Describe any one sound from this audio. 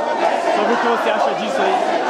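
A middle-aged man speaks up close amid the noise.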